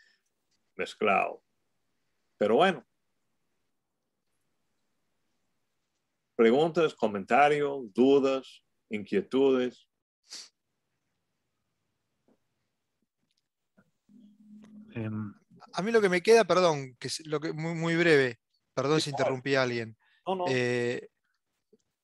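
A man speaks calmly over an online call, with pauses.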